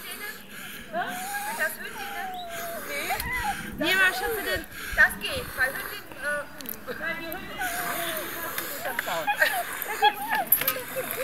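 Dogs whine and yelp excitedly close by.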